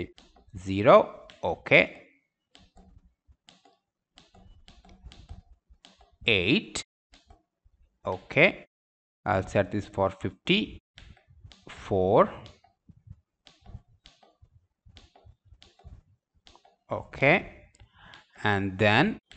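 A small push button clicks several times.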